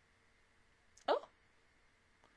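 A young woman makes a short sound close to a microphone.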